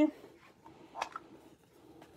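A plastic stamp block clacks on a table.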